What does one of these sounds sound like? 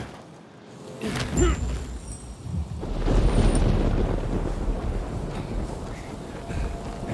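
A low rumbling roar swells and goes on.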